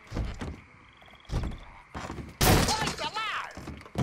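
A wooden door is kicked open with a loud bang.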